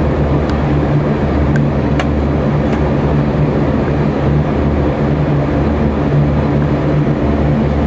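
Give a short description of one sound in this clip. Rain patters on a window.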